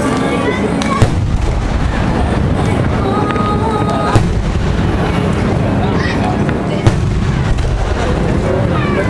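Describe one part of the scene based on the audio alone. Fireworks crackle and sizzle overhead.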